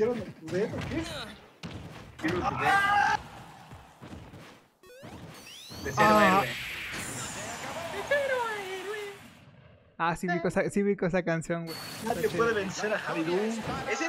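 Several young men talk and laugh excitedly over an online call.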